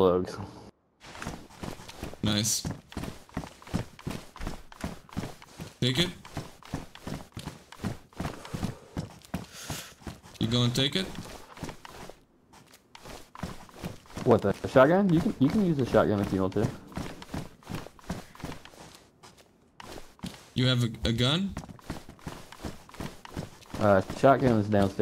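Footsteps tread steadily across a hard floor.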